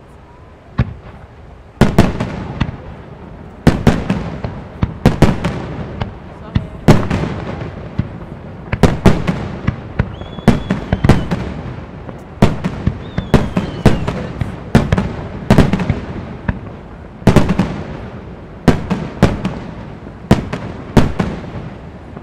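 Fireworks boom loudly in the open air, one blast after another, with echoes rolling away.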